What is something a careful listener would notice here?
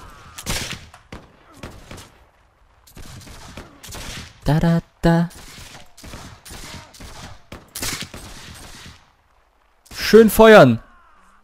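Muskets fire in sharp, cracking shots.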